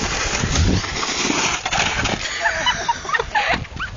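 A snowboarder thuds down onto the snow in a fall.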